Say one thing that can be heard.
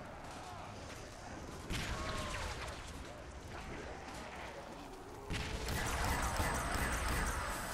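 A zombie groans and snarls close by.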